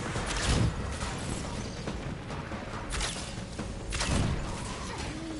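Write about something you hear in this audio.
Energy arrows whoosh and strike with sharp blasts.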